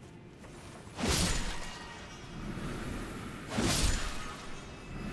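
A blade swishes sharply through the air.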